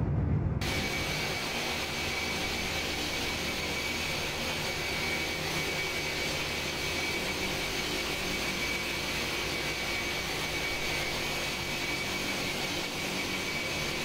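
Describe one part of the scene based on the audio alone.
Jet engines roar steadily.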